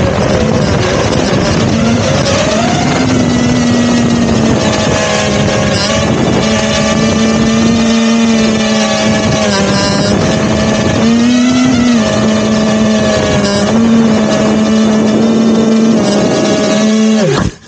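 Small drone propellers whine loudly, with the pitch rising and dipping as the drone speeds up and slows down.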